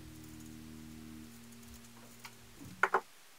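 Scissors snip through felt.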